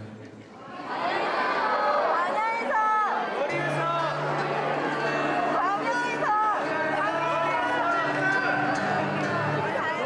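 A man sings into a microphone over a loudspeaker system.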